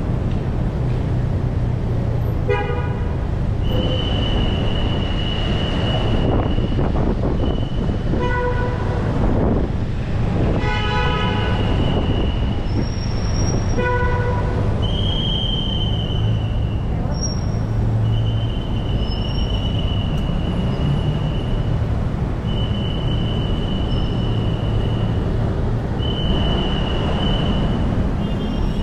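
Car engines rumble steadily nearby.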